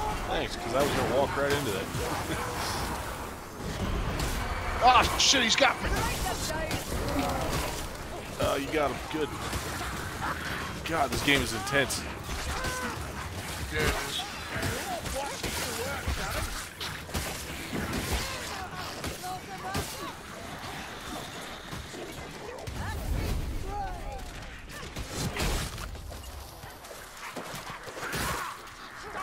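Creatures snarl and shriek as they are struck down.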